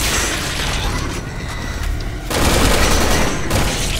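Heavy footsteps clang on metal stairs.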